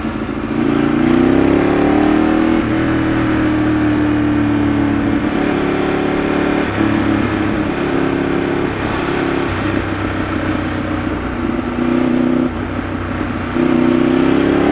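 A Ducati V-twin sport bike engine drones as it cruises along a winding road, rising and dropping in pitch with gear changes.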